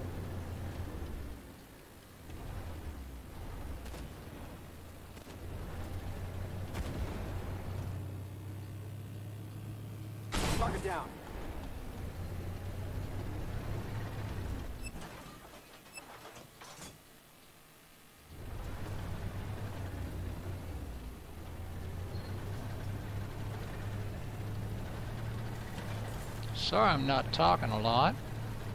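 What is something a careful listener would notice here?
A heavy tank engine rumbles low and steady.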